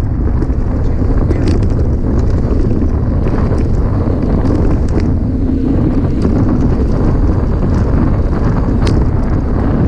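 Bicycle tyres crunch and rattle over loose sand.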